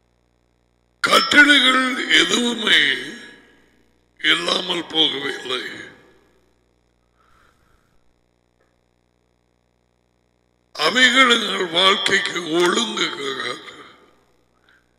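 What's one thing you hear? A man speaks with animation into a headset microphone, close up.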